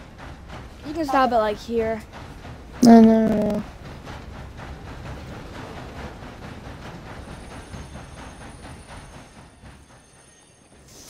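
A steam train rumbles and chugs along.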